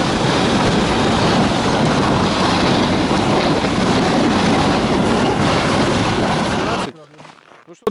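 A snowmobile engine roars loudly close by.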